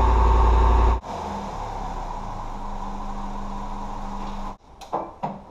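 A car engine runs quietly nearby.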